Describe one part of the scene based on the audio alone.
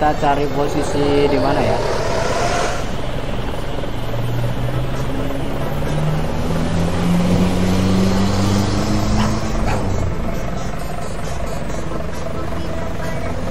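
A bus engine hums and rises in pitch as the bus speeds up.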